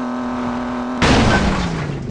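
A loud crash sounds as a car hits a vehicle.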